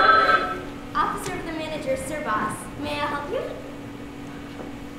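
A young girl speaks on a stage, with a slight echo.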